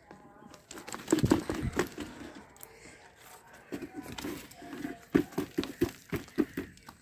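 Soil crumbles and rustles as a plant is pulled up by its roots.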